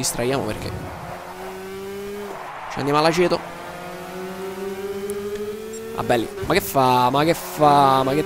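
A small kart engine buzzes close by, its pitch rising and dropping as it revs.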